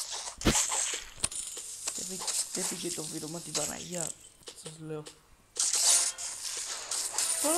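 Quick blades swish through the air again and again.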